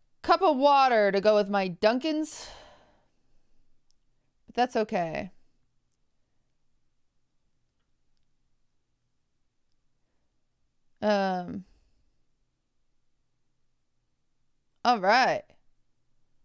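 A young woman speaks expressively into a close microphone, in short bursts with pauses.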